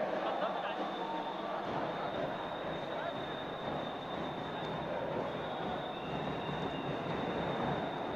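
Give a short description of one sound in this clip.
Spectators chatter and murmur throughout a large echoing hall.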